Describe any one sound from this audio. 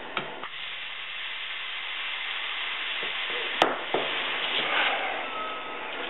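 A metal fitting clicks and taps as a hose is screwed on.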